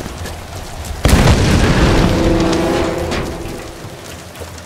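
A fire bursts with a loud whoosh and then roars.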